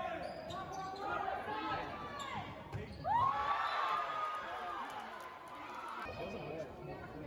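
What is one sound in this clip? A crowd of spectators cheers and shouts in a large echoing hall.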